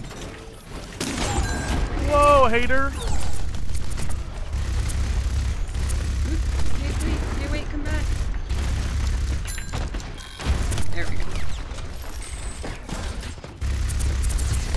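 A game gun fires rapid heavy bursts with low rumbling thuds.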